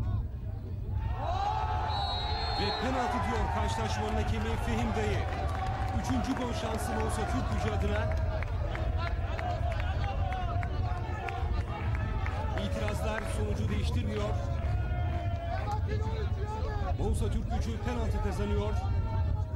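Men shout on an open field.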